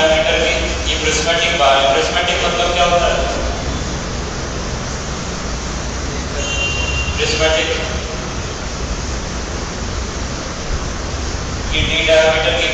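A man speaks calmly through a clip-on microphone, with long pauses.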